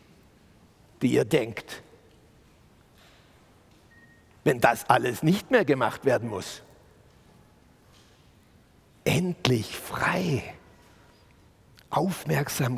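A middle-aged man speaks with animation through a microphone, in pauses.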